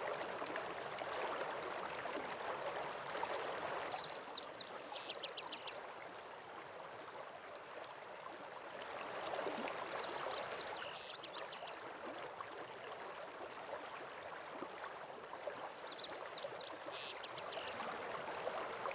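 A waterfall rushes steadily in the distance.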